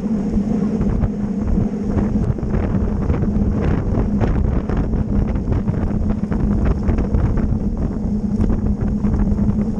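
A bicycle freewheel ticks and rattles.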